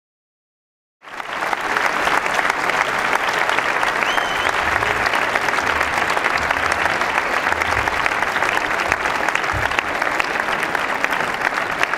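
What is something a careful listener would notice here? A large concert band plays a lively Latin dance tune.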